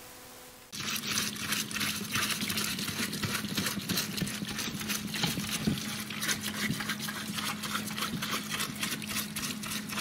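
A stiff brush scrubs metal.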